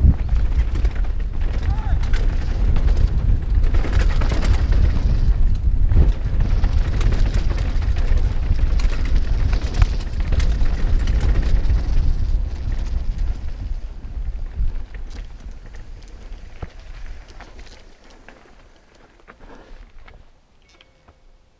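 Bike tyres crunch and rattle over a rough dirt trail.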